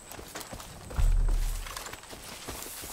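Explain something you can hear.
A grenade explodes with a deep, rumbling boom.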